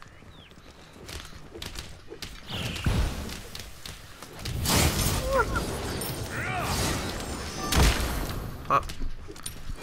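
Magic blasts whoosh and crackle in short bursts during a fight.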